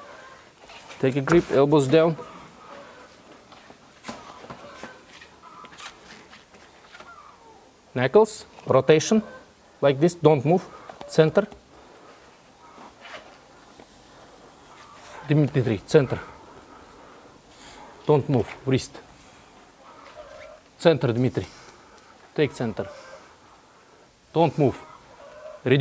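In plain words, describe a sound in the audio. A man speaks in short commands nearby, in bursts with pauses.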